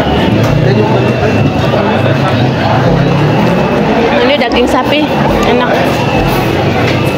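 Many people chatter all around in a busy, noisy room.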